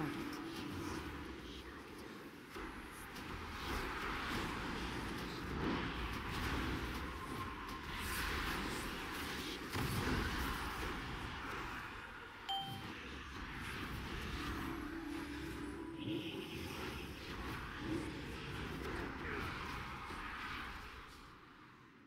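Magic spells crackle and whoosh in rapid bursts.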